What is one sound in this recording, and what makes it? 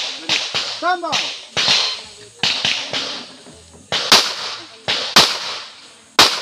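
A pistol fires a quick series of shots outdoors.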